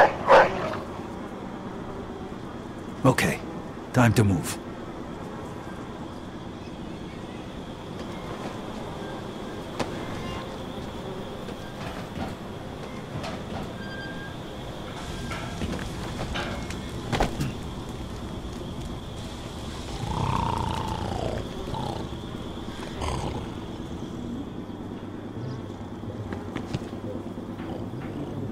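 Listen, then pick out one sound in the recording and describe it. Footsteps run over hard ground.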